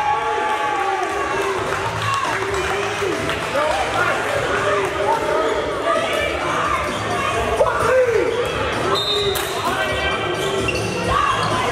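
Sneakers squeak on a hardwood court.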